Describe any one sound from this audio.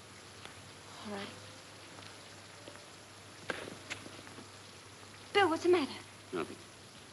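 A young woman speaks softly and anxiously, close by.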